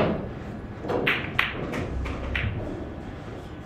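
Billiard balls knock against each other and the cushions as they roll.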